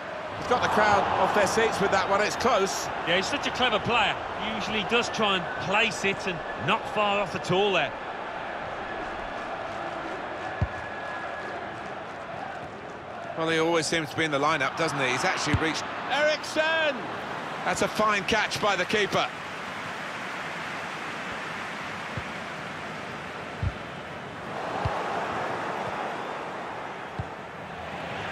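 A stadium crowd roars and murmurs steadily throughout.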